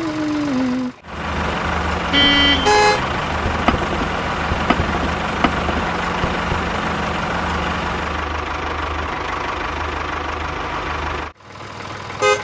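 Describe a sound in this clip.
A small tractor engine rumbles steadily.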